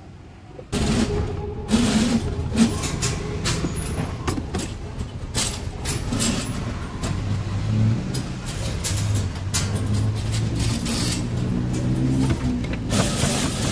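Metal utensils clink and clatter.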